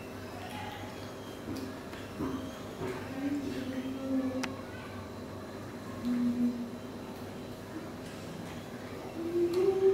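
Young monkeys squeak and chirp softly nearby.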